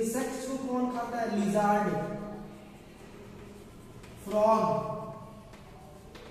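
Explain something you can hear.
Chalk scratches and taps on a chalkboard.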